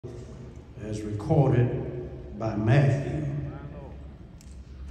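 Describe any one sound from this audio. A man speaks through a loudspeaker in a large echoing hall.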